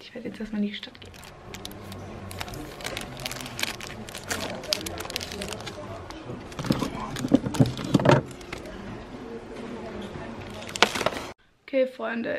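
Plastic packaging rustles and clicks as it is handled.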